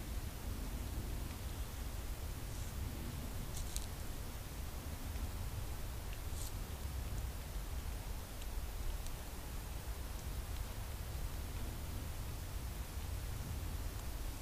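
A deer rustles dry leaves underfoot.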